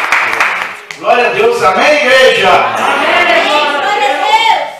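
A man sings loudly through a microphone.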